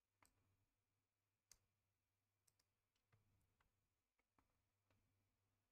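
Short soft clicks and chimes of a card game's sound effects sound now and then.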